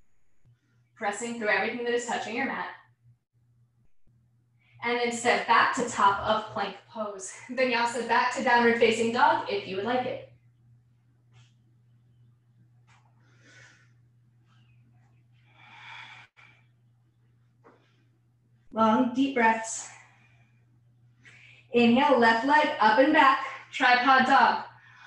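A young woman speaks calmly and clearly through a microphone.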